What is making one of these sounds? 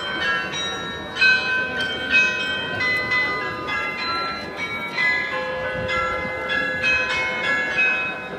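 Clock tower bells ring out a tune, with each struck note ringing on.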